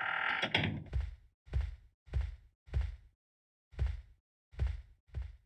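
Heavy footsteps thud slowly on a floor.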